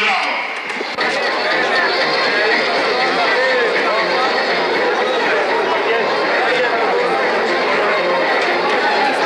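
A large crowd of men talks and murmurs outdoors.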